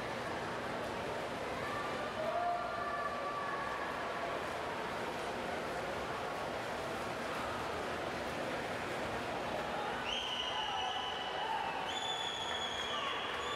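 A crowd of spectators cheers in an echoing indoor pool hall.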